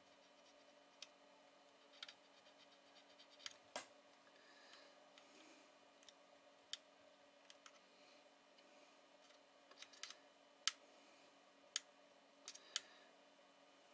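A screwdriver clicks and scrapes against a circuit board.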